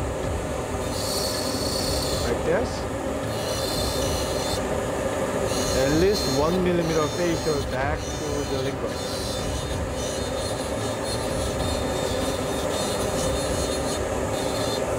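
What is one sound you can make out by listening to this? A small dental drill whirs in short high-pitched bursts.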